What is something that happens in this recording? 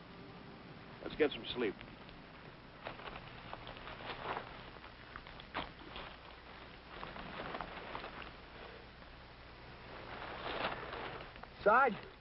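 Men rustle and shift in dry brush.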